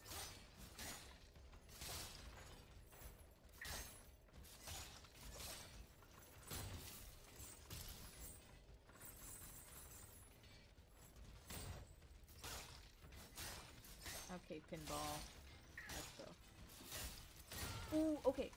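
Metal weapons clash and strike armour in quick, sharp hits.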